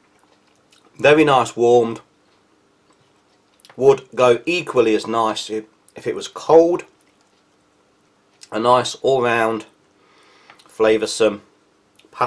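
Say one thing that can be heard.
A plastic spoon stirs and scrapes through pasta.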